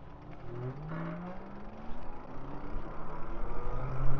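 An electric bike motor whines and rises in pitch as it speeds up.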